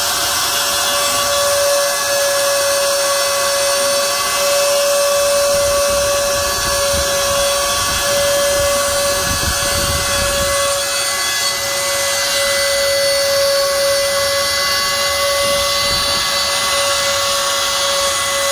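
A cutting bit grinds and rasps through wood.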